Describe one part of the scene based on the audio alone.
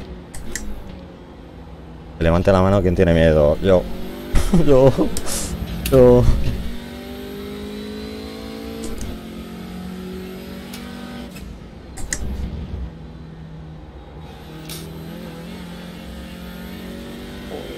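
A race car engine revs and drones, rising and falling in pitch.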